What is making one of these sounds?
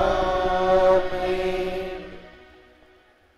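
A man sings a short phrase through a microphone in an echoing hall.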